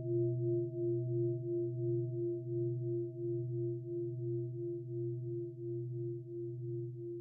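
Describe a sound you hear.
A man chants a low, steady, droning tone over an online call.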